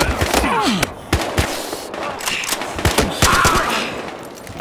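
A rifle fires in quick bursts of sharp shots.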